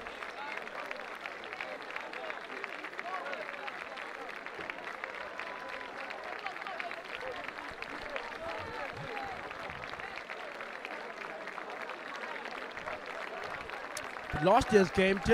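Distant spectators chatter and murmur outdoors.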